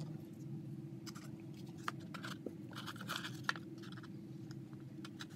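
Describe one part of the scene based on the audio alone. Thin foil crinkles and rustles in hands.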